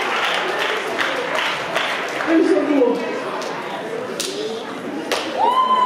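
Hands clap in applause.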